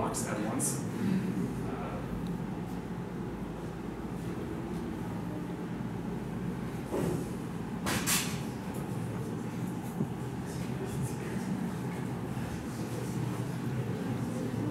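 A young man speaks calmly and thoughtfully, with pauses.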